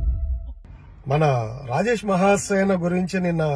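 A man speaks with animation close to a phone microphone.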